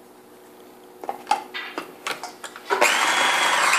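A lid clicks into place on a grinder.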